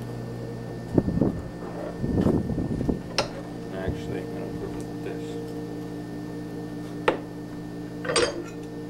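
Metal clanks against metal a few times.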